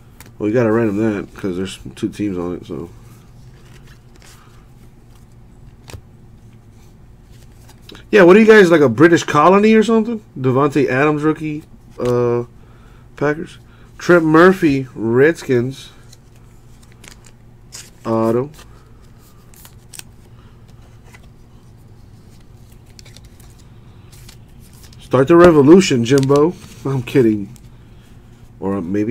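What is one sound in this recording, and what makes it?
Trading cards rustle and slide as they are shuffled by hand.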